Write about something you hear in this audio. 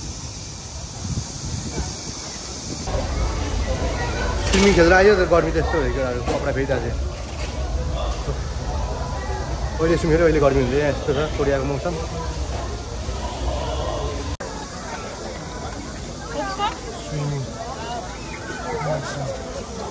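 A crowd chatters around.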